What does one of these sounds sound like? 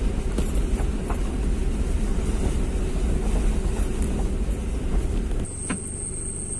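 A car engine rumbles low as the car drives along.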